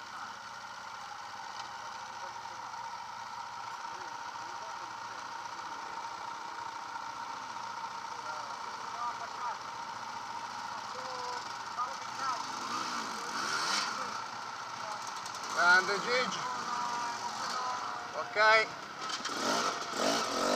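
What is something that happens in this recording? Several dirt bike engines idle nearby.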